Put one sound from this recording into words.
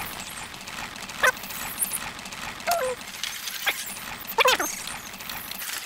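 A horse-drawn cart rumbles over cobblestones.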